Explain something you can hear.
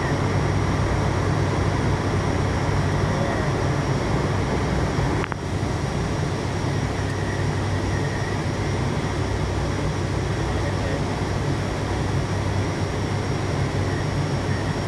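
Aircraft engines drone loudly and steadily.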